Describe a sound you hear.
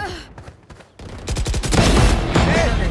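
Rapid rifle gunfire bursts loudly.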